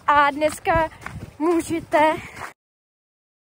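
A young woman speaks close up, outdoors.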